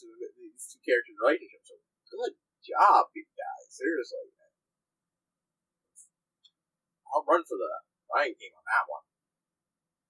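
A young man talks casually and close to a microphone, with pauses.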